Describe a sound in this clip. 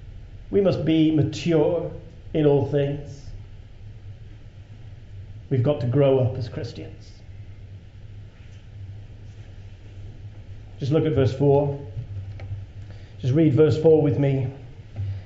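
A man speaks slowly and expressively in short phrases into a microphone, with pauses between them.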